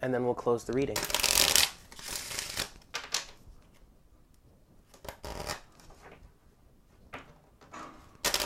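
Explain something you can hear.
Playing cards riffle and slap together as they are shuffled by hand.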